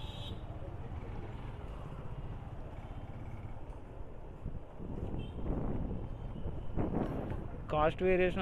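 Motorcycle engines hum as they ride past nearby.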